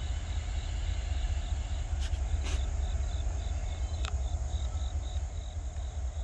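A train rumbles faintly far off.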